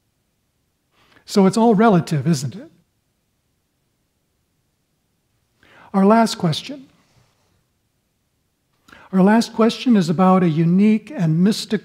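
An elderly man speaks calmly and warmly into a close microphone, with pauses between phrases.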